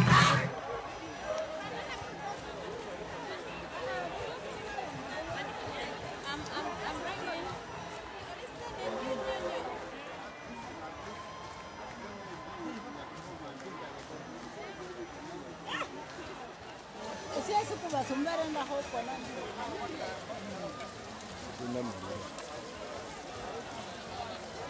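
A large outdoor crowd murmurs and chatters throughout.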